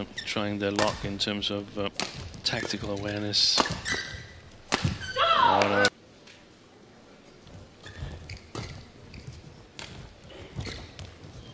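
A badminton racket strikes a shuttlecock with sharp pops, again and again.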